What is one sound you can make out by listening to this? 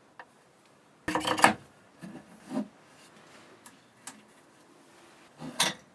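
A thick cord rustles and taps against wood as it is handled.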